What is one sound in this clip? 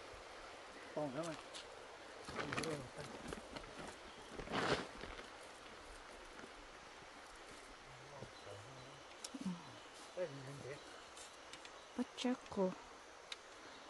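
A young man talks casually nearby, outdoors.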